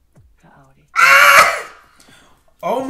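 A young man laughs and exclaims loudly, close to a microphone.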